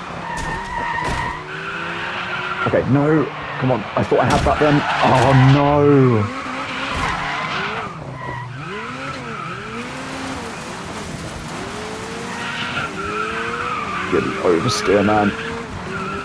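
A racing buggy engine revs and whines through gear changes.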